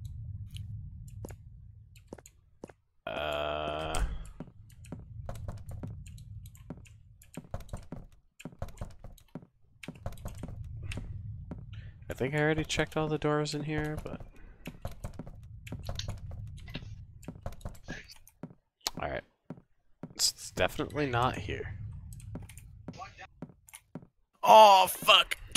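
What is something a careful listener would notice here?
Quick light footsteps tap on a wooden floor.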